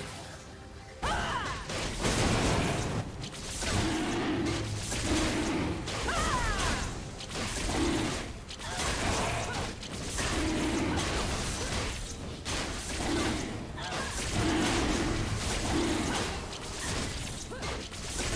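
Magic blasts and clashing blows of a fight ring out in quick succession.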